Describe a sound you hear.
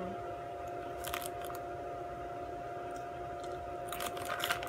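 A young woman crunches on a crispy snack close by.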